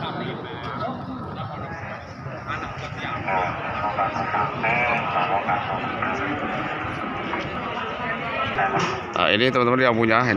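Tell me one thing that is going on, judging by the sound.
A crowd of men chatter nearby, outdoors.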